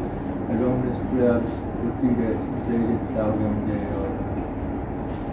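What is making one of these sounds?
An elderly man chants slowly.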